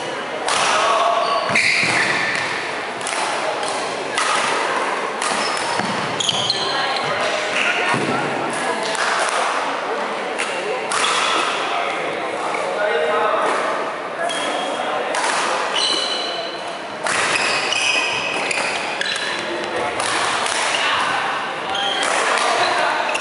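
Sports shoes squeak sharply on a wooden floor.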